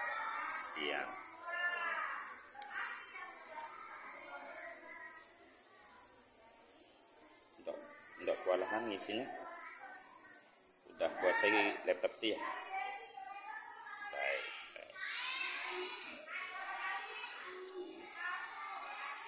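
Children talk nearby in a room.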